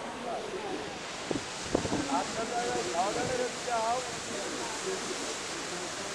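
Water churns and splashes against a boat's hull.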